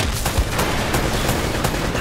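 A rocket streaks past and explodes.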